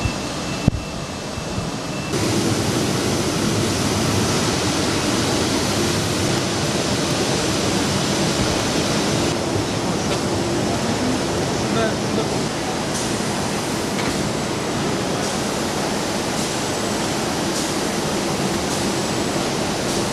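Industrial machines hum and whir steadily in a large echoing hall.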